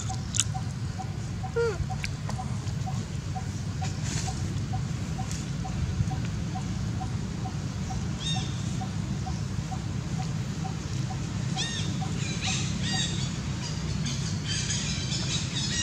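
A monkey gnaws and scrapes at a coconut husk.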